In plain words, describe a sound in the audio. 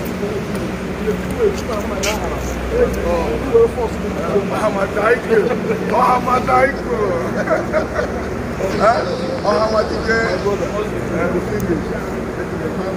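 A man speaks loudly and with animation close by.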